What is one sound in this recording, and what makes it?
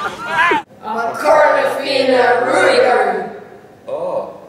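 A teenage boy talks calmly up close.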